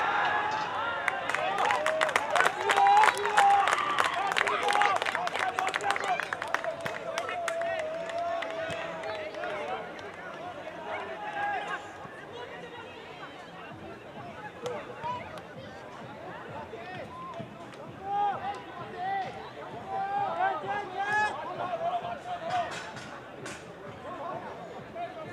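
A crowd of spectators chatters in the distance.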